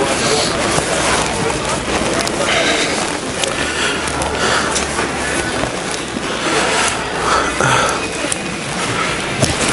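People talk in a large room with a slight echo.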